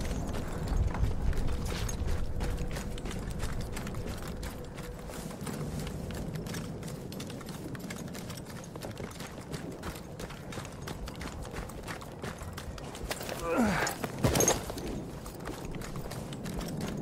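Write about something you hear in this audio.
Footsteps run quickly over grass and gravel.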